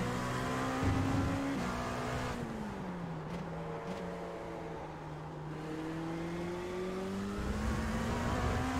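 A racing car engine roars, its pitch dropping as it slows and then climbing again as it speeds up.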